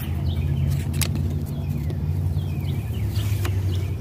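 Paper backing crinkles as a sticker is peeled off.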